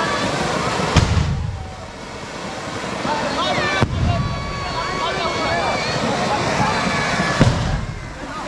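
Firecrackers bang sharply outdoors.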